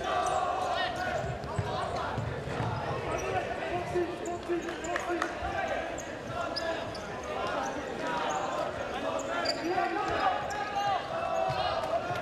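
A crowd cheers and chatters loudly in a large echoing hall.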